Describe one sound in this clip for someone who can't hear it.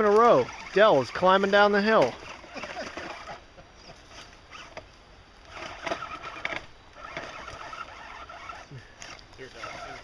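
Leaves and twigs rustle as a man pushes through undergrowth.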